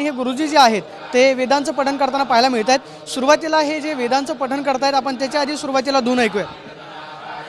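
A man chants loudly in a sing-song voice.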